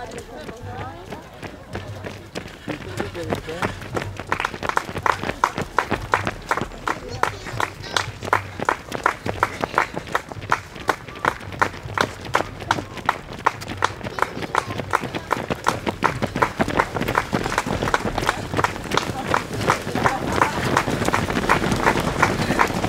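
Running shoes slap rhythmically on a paved path, growing louder as more runners pass.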